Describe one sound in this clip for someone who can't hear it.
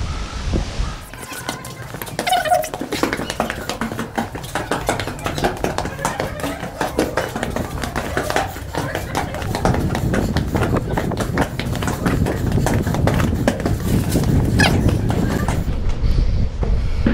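Footsteps climb stone stairs and echo in a narrow space.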